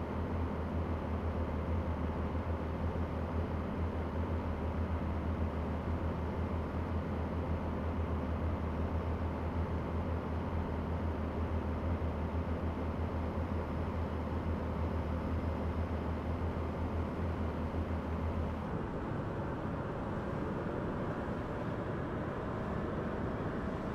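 Tyres roll and hum on the road.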